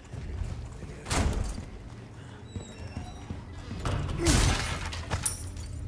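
A wooden door creaks open.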